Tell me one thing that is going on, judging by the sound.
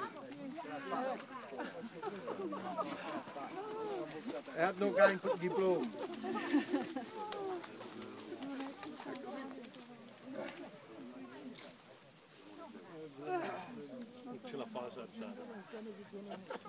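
Women talk and exclaim with animation close by.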